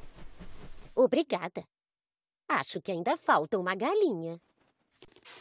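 A woman speaks cheerfully in a cartoon voice.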